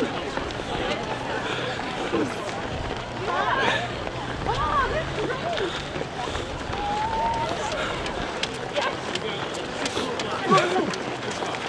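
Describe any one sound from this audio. Many runners' footsteps patter on pavement outdoors.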